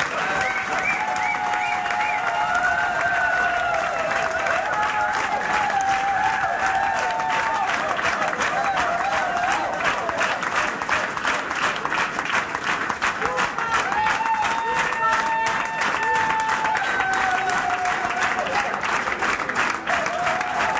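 An accordion plays along.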